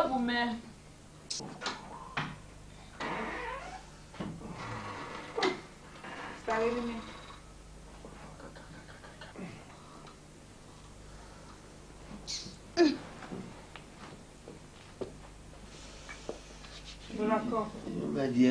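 A woman speaks indoors.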